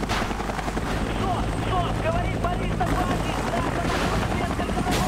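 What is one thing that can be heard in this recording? A man shouts urgently over a radio.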